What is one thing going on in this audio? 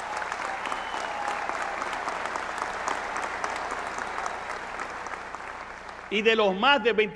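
A large audience applauds in a big hall, slowly fading.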